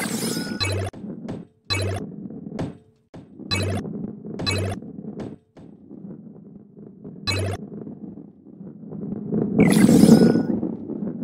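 A ball rolls and rumbles along a wooden track.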